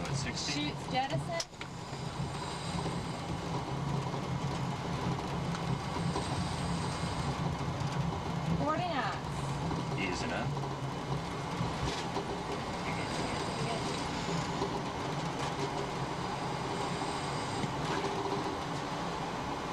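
Cabin equipment hums steadily and low.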